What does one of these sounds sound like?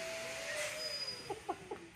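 A man laughs softly close by.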